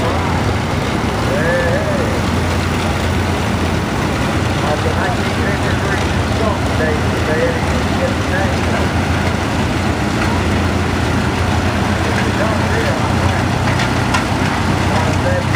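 Old tractor engines chug and putt steadily close by.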